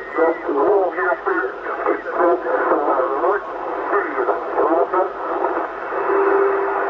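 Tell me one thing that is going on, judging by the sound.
A voice speaks through a crackly radio loudspeaker.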